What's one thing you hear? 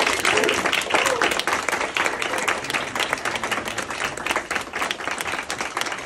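A man close by claps his hands loudly.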